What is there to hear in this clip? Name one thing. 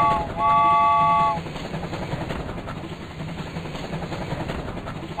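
A toy train chugs along its track.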